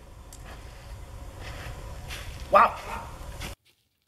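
A revolver's metal parts click as they are handled.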